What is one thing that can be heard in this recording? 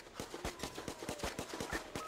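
A small explosion bursts.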